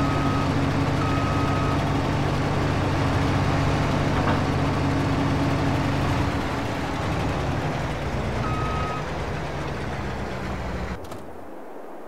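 A forage harvester engine drones steadily.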